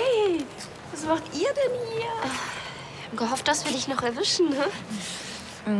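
A second young woman answers cheerfully nearby.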